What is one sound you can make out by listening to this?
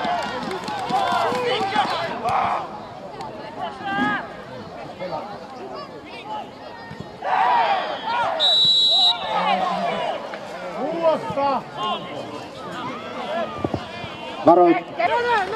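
Men shout and call out across an open field outdoors.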